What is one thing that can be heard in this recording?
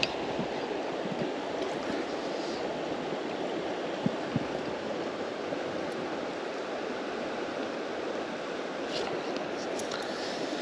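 A river rushes steadily over stones nearby.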